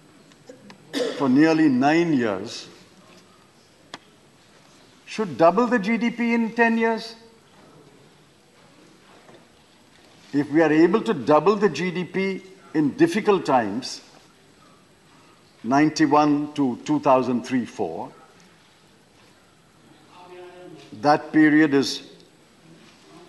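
An elderly man speaks slowly and firmly into a microphone, pausing between phrases.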